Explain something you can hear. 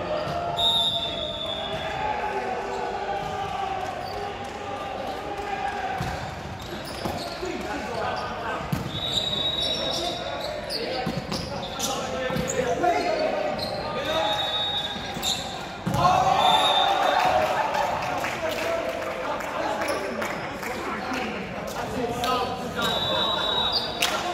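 Young men shout and call out during play, echoing in a large hall.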